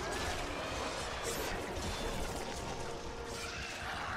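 Creatures screech and explode nearby.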